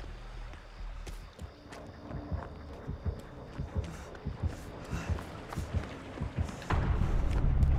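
Footsteps crunch over dry leaves.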